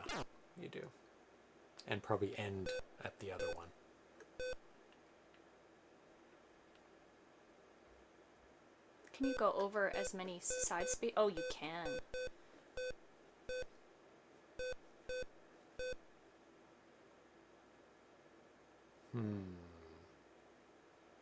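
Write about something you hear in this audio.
A man talks casually over a microphone.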